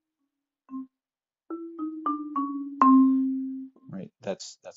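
Wooden bars of a marimba ring out as soft mallets strike a few notes.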